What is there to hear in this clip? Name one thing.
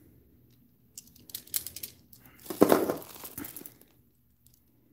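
Plastic wrapping rustles.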